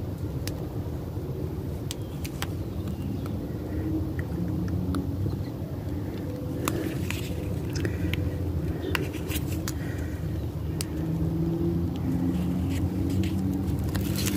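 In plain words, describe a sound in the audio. Fingers rub and pick at a stiff paper card, with small scratching clicks.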